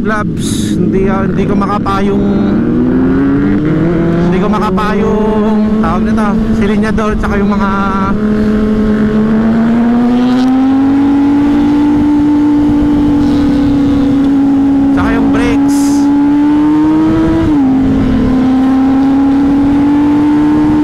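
A motorcycle engine hums steadily and rises in pitch as it speeds up.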